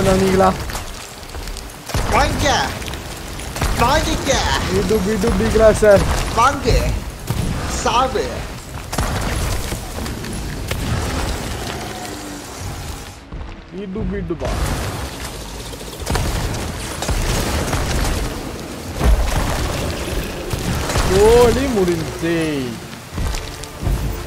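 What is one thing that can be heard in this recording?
A young man talks with animation, close up.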